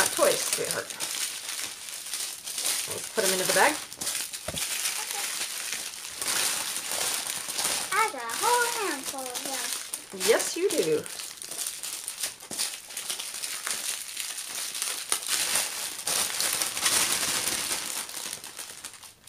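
Plastic packets rustle and crinkle as hands handle them.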